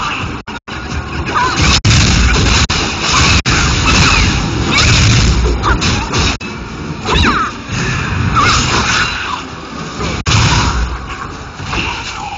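Creatures growl and shriek as they are hit.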